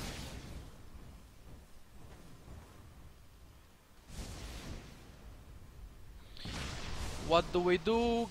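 Game spell effects whoosh in short bursts.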